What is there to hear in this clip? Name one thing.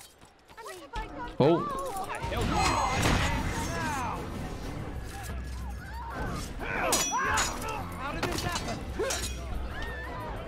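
Men shout and grunt while fighting.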